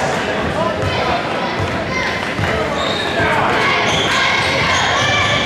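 Basketball shoes squeak sharply on the court.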